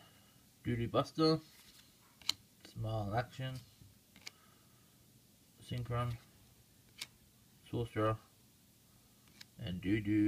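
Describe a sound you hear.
Cards slide and flick against one another in a hand.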